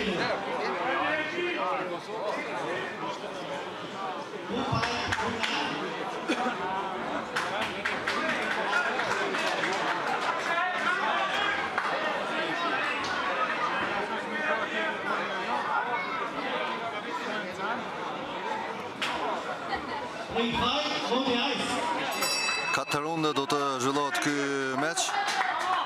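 A large indoor crowd chatters and murmurs throughout, echoing in a big hall.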